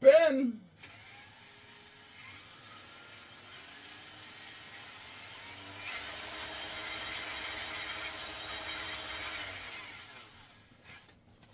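A drill whirs, speeding up and then winding down.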